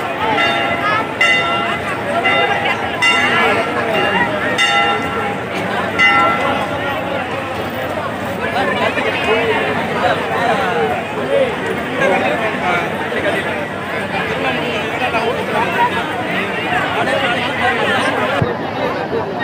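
A large outdoor crowd chatters loudly all around.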